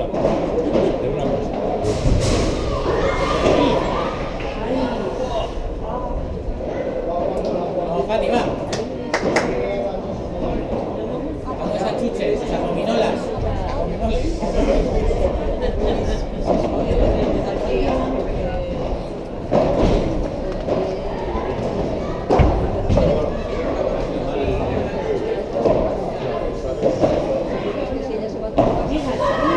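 A ball bounces on the court.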